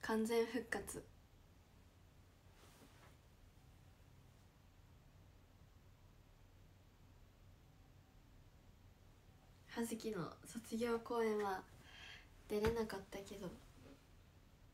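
A young woman talks calmly and close by, in short bursts with long pauses.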